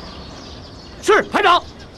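A young man shouts a reply.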